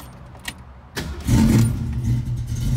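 A car engine starts with a sudden roar.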